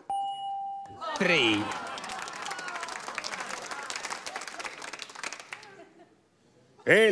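A studio audience applauds and cheers.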